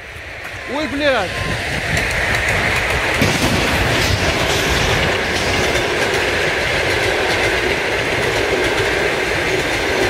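A passing train rumbles and clatters loudly along the tracks.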